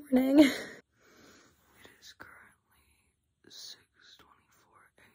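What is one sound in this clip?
A young woman whispers softly close by.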